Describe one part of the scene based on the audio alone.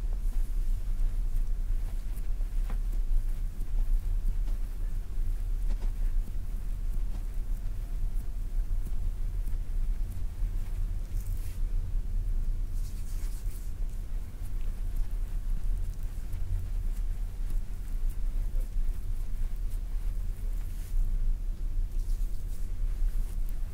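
Fingers rub and press on bare skin close to the microphone, with soft swishing.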